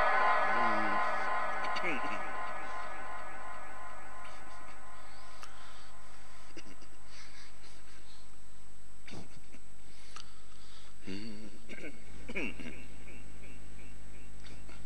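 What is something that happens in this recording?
A middle-aged man chants in a long, drawn-out voice through an echoing loudspeaker.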